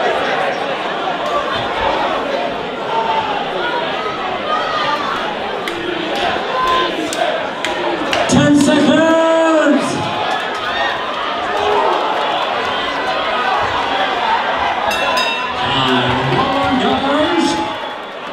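A crowd chatters and shouts loudly in a large echoing hall.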